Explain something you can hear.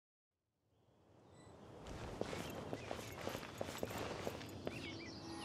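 Footsteps patter across grass and stone.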